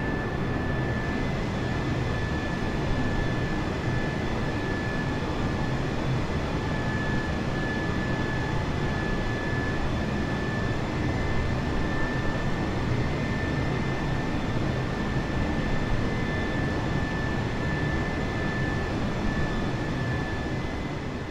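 A jet airliner's engines roar steadily.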